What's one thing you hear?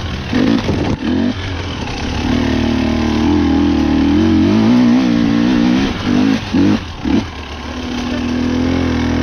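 A dirt bike engine revs and bursts loudly close by.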